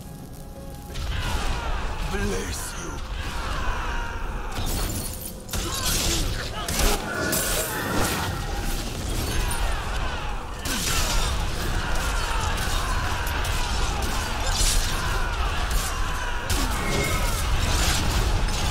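Spells crackle and blast as a battle rages.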